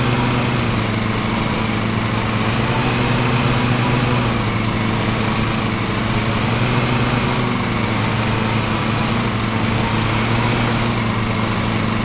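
A riding mower's engine hums steadily.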